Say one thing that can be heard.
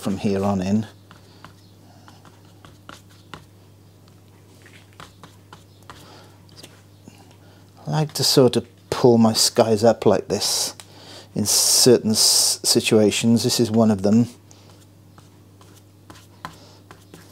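A brush swishes and dabs softly on paper.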